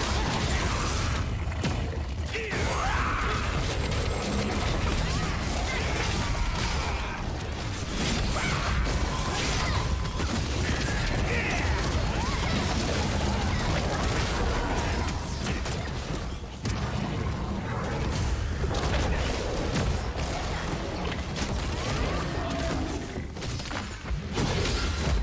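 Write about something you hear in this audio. Heavy impacts thud and boom repeatedly.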